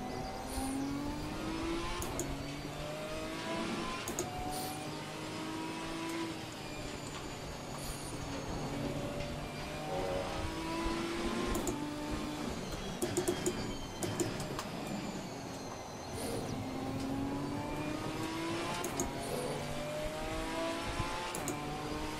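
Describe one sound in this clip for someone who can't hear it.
Rain spray hisses against a car windscreen.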